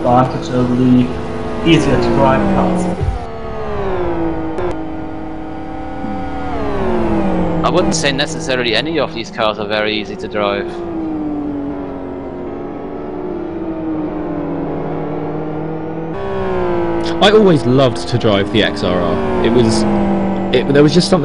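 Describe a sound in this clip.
Racing car engines roar at high revs, rising and falling as the cars shift gears.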